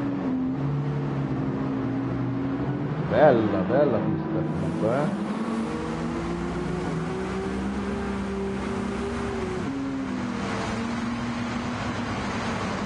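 Racing car engines hum steadily and shift pitch as the cars change gear.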